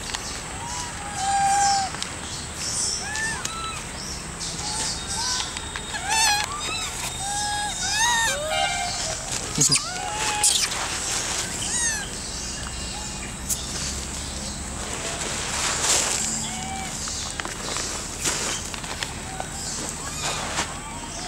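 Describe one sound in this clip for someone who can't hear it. Monkeys squeak and chirp close by.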